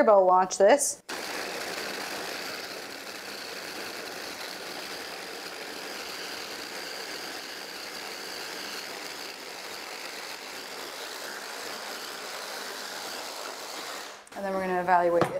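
A hand blender whirs steadily.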